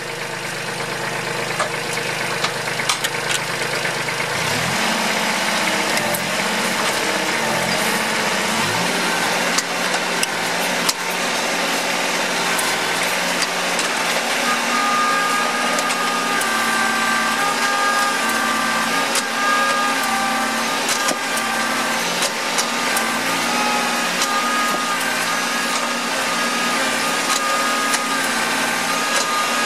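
A small petrol engine runs loudly and changes pitch as it revs.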